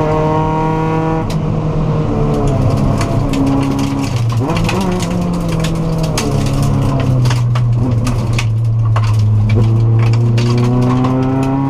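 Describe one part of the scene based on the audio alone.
A Subaru WRX rally car's turbocharged flat-four revs hard and shifts through the gears.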